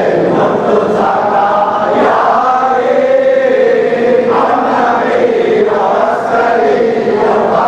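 A crowd of men chants together in a large echoing hall.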